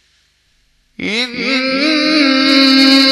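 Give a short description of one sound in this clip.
A man chants loudly and melodiously through a microphone and loudspeakers.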